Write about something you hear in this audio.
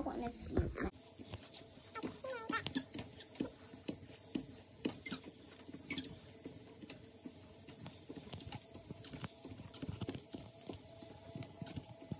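Footsteps thud on a treadmill belt.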